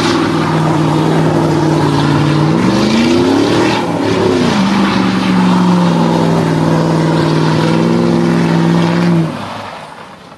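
A truck engine roars loudly, its pitch rising and falling as it revs.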